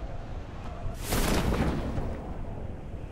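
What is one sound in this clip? A parachute snaps open with a loud whoosh.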